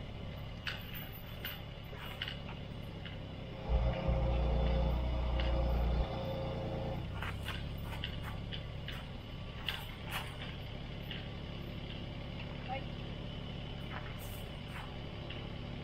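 Metal clanks as a hoisted engine swings on its chains.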